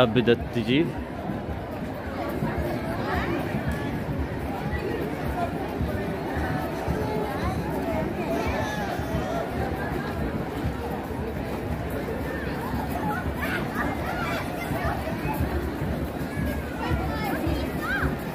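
A large outdoor crowd chatters with many overlapping voices.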